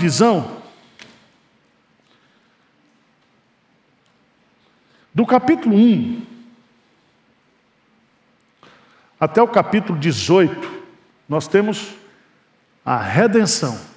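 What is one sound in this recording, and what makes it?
A middle-aged man preaches with emphasis through a microphone, in bursts with pauses.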